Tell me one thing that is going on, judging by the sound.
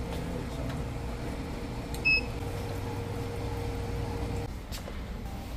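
A drink dispenser whirs as it pours into a cup.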